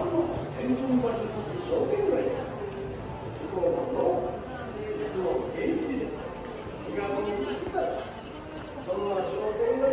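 Footsteps shuffle on a paved walkway.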